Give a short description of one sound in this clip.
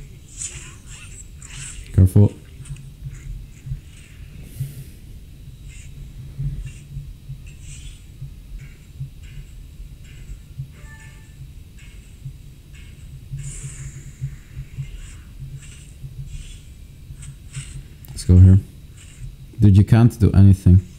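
A young man talks into a nearby microphone.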